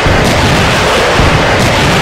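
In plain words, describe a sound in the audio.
A cannon fires a sharp shot.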